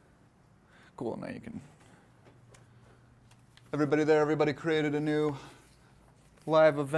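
A man speaks aloud to a room, clearly and calmly.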